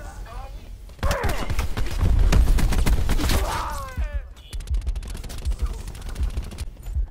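A rifle fires rapid bursts at close range.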